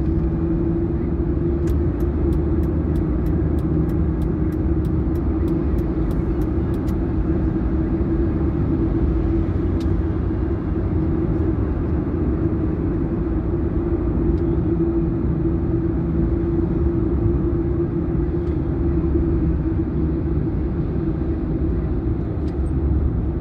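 Tyres roar on a motorway.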